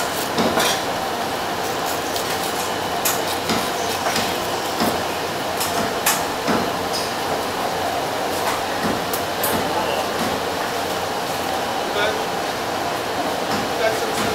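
A knife taps and scrapes against a cutting board.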